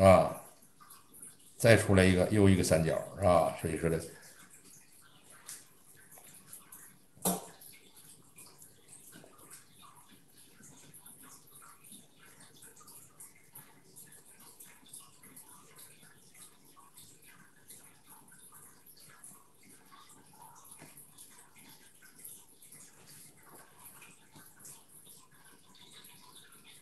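A brush softly dabs and brushes on paper.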